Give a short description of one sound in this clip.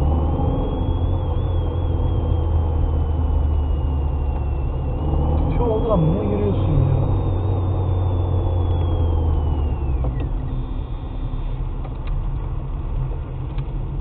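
A car engine hums steadily over the rumble of tyres on the road.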